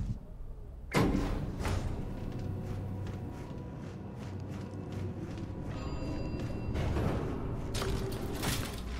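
A lift hums and rumbles as it moves.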